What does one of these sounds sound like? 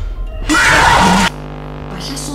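A loud electronic screech blares.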